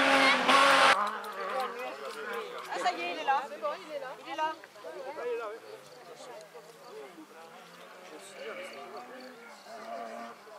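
A rally car engine whines faintly in the distance.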